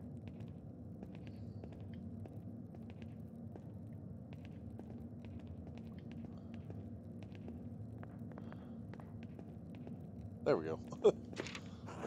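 Footsteps tap softly on a stone floor.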